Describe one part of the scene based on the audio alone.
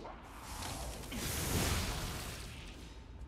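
A blade strikes metal with a loud clash.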